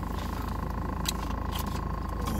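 A man crunches on food while chewing.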